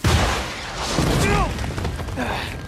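A man cries out in surprise.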